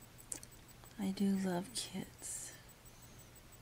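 A woman speaks briefly and close up into a webcam microphone.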